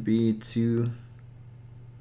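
A man speaks briefly and close to a microphone.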